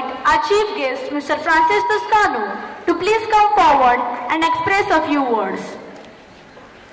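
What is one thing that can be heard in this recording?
Two young women sing together through microphones and a loudspeaker.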